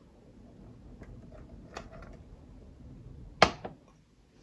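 Liquid pours into a glass.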